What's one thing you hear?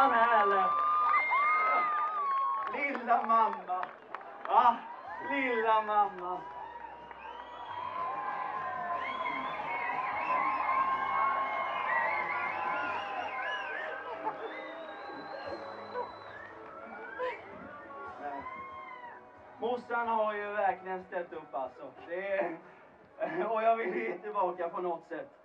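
A young man talks with animation into a microphone over loudspeakers.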